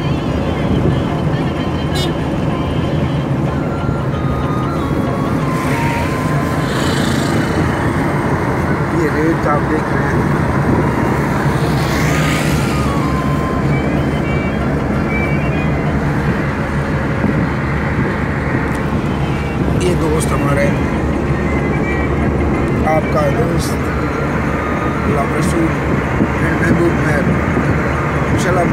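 A car engine hums steadily with tyres rolling on the road.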